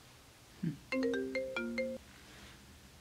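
A phone ringtone plays a short chiming melody.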